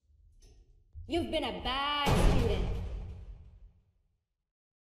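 A creature's deep, menacing voice speaks loudly.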